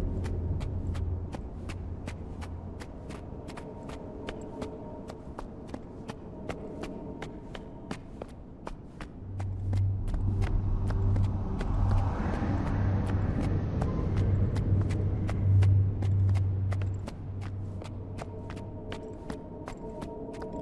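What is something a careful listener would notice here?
Footsteps patter quickly and steadily.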